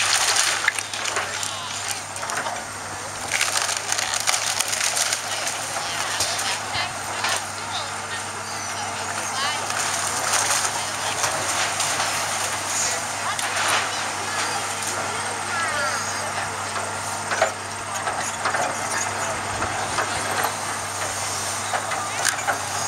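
Wood cracks and splinters as a house is torn apart.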